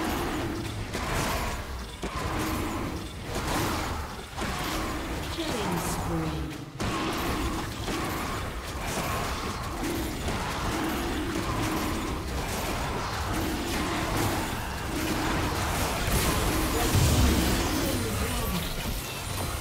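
A deep roar booms from a large creature.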